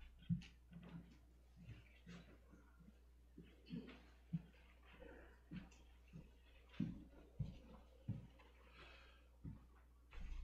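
Footsteps thud across a floor.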